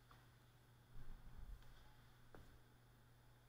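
Something heavy is set down on a table with soft knocks, in a large echoing hall.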